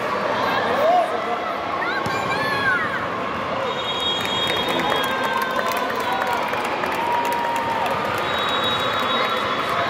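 Young women call out to each other across the court.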